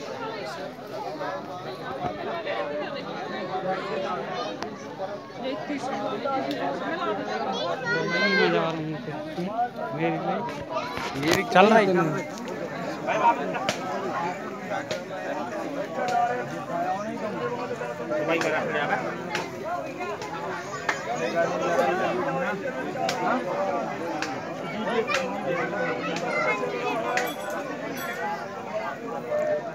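A large crowd of men and women chatters outdoors.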